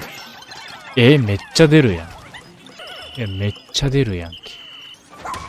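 Cheerful game chimes and bleeps sound in short bursts.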